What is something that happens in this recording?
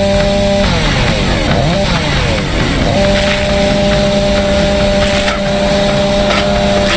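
A chainsaw engine runs with a steady, droning hum.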